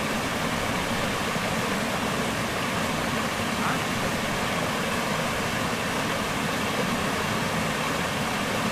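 A stream of water flows and gurgles steadily over rocks.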